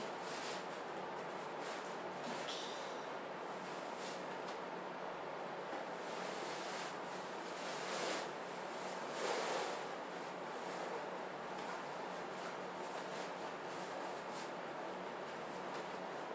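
Fabric rustles and swishes as a sash is wrapped and tied.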